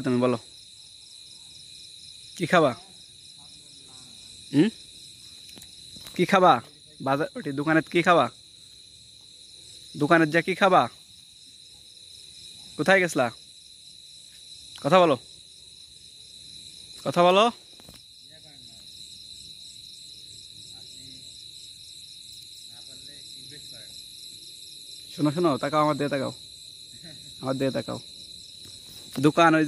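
A man speaks close by in short, loud bursts with pauses between.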